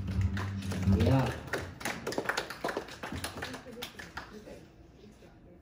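Acoustic guitars strum a lively tune through loudspeakers.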